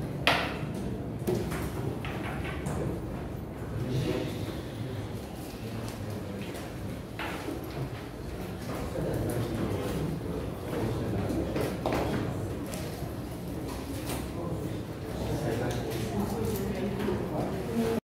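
A man lectures through a microphone in a room with some echo.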